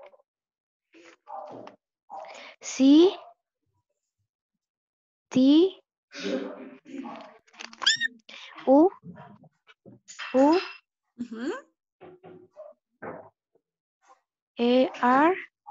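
A girl speaks with animation over an online call.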